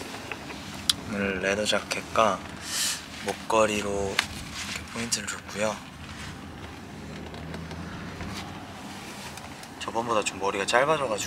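A young man speaks softly and close by.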